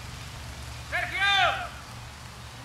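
A falcon gives a sharp, shrill call.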